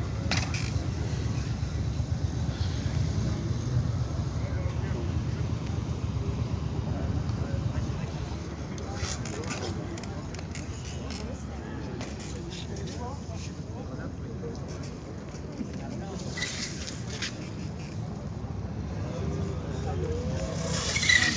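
Bicycle tyres roll and scrape on concrete.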